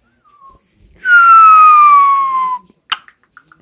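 A parrot whistles a long falling note.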